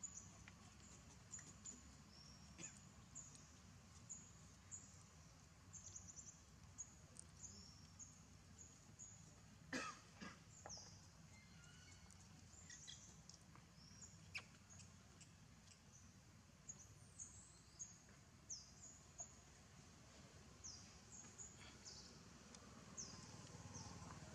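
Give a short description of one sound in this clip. A baby monkey squeaks and squeals in short high cries.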